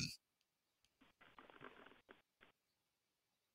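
A man speaks quietly over an online call.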